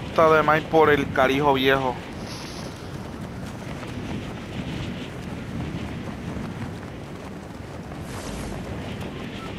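Wind rushes steadily past a skydiving figure.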